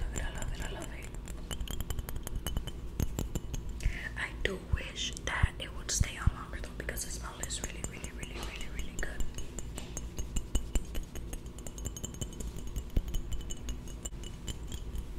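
Fingers tap on a glass bottle in quick, soft clicks.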